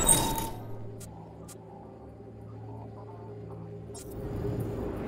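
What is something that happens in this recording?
A game menu gives short electronic clicks as options are selected.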